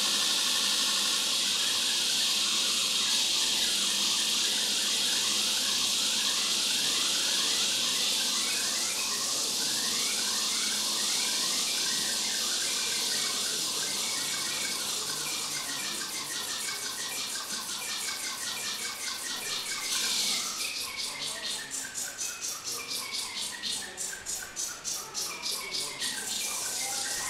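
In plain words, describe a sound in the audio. Electronic synth music plays with quick rippling notes.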